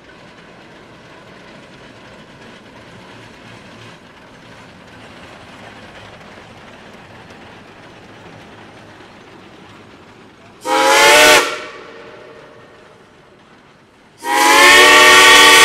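A steam locomotive chugs steadily past.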